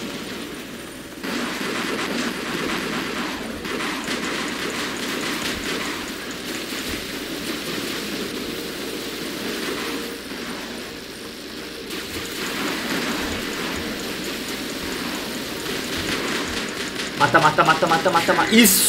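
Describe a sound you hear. Heavy robot footsteps thud steadily.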